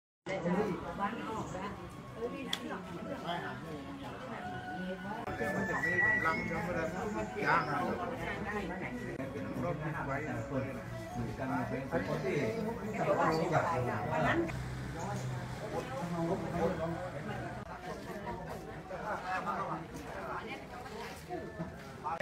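A small crowd murmurs quietly.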